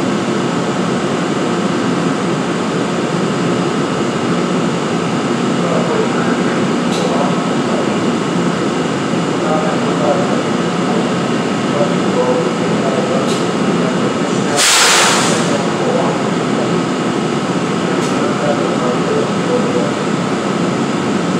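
A train's engine idles with a steady, low rumble.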